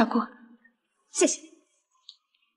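A young woman says a short thank-you softly.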